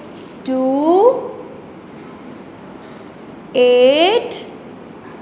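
A woman speaks in long, drawn-out, rising calls close by.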